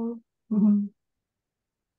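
A young woman speaks briefly and calmly through a microphone.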